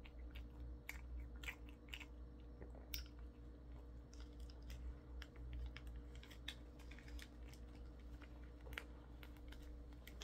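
Plastic wrapping crinkles close by.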